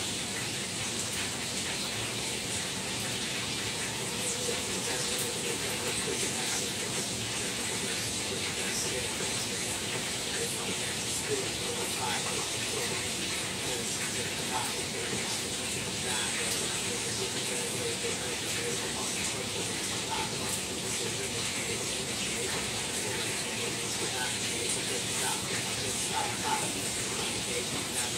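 Food sizzles and crackles steadily in a frying pan.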